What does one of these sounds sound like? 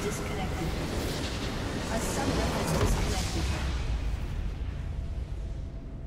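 Game explosions and spell effects burst loudly, then fade.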